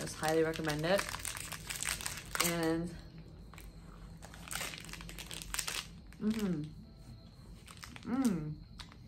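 A wrapper crinkles in hands.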